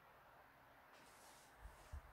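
A brush swishes briefly across paper.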